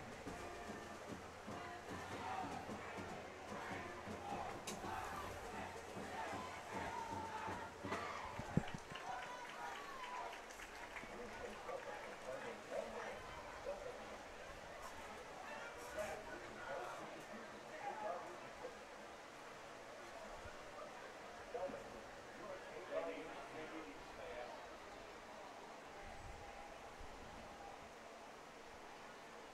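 A crowd of spectators chatters and calls out in the distance outdoors.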